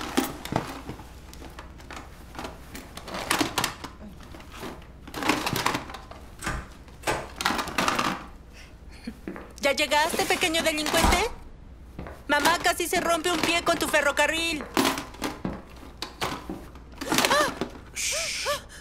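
A woman speaks with animation.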